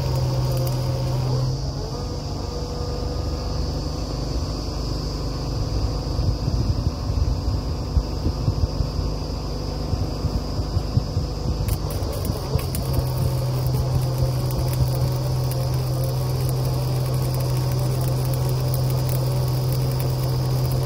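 A large diesel engine runs with a steady low rumble.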